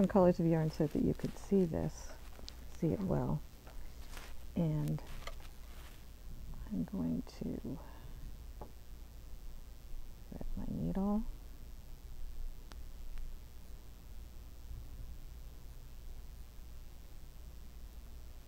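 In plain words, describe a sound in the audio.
Yarn rustles softly between fingers.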